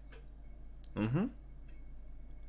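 A young man makes a short rising exclamation close to a microphone.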